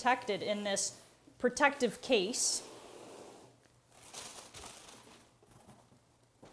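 Plastic wrap rustles and crinkles.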